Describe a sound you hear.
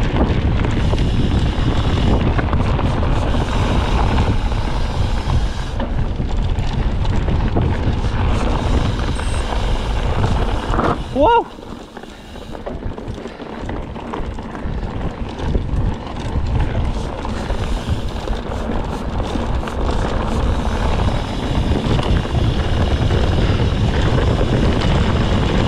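Wind rushes loudly past a close microphone outdoors.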